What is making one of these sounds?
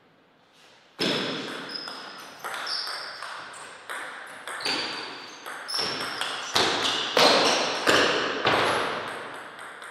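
A ping-pong ball clicks quickly back and forth off paddles and a table.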